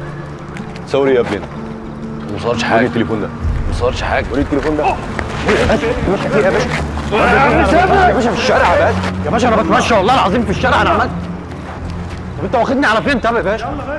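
A young man speaks in a tense, pleading voice nearby.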